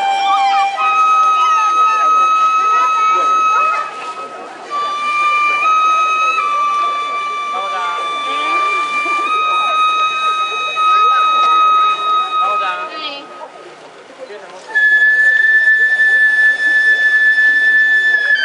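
Small hand bells jingle as dancers shake them.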